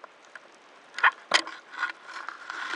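Seagrass brushes and rustles against a diver underwater.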